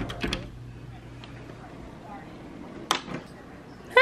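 A door latch clicks as a door opens.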